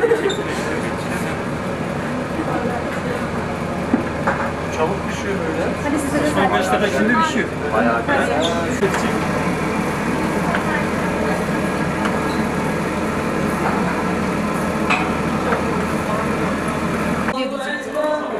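Meat sizzles on a hot grill.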